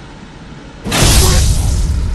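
A heavy blow lands with a deep booming impact.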